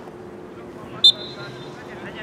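A referee's whistle blows sharply once.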